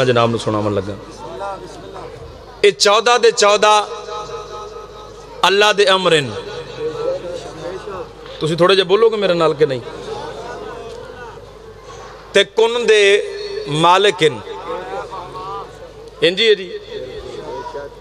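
A man recites in a loud, impassioned chanting voice through a microphone, in bursts.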